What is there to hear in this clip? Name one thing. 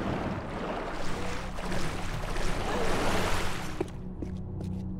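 Water splashes as a swimmer strokes through it.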